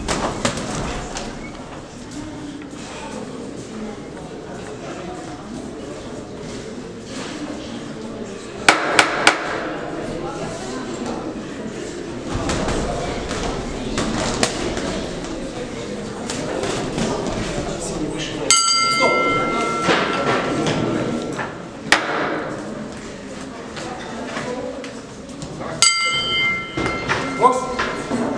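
A crowd of spectators murmurs and chatters in a large echoing hall.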